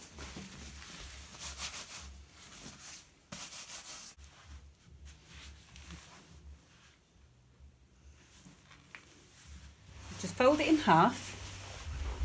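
Fabric rustles and crinkles as it is handled.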